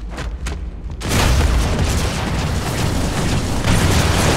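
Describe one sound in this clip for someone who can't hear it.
Plasma bolts crackle and explode.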